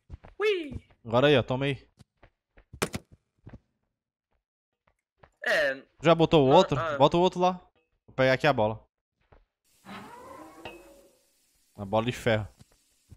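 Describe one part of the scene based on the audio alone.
A man talks with animation close to a microphone, in bursts.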